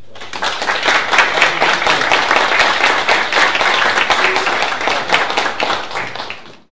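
A small group of people applauds in a room.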